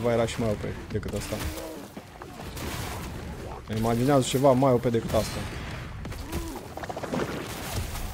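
Game spells crackle and whoosh with fire.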